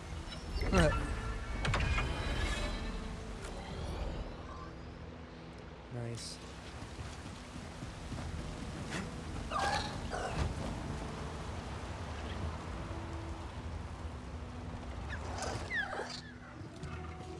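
A young man speaks now and then, close to a microphone.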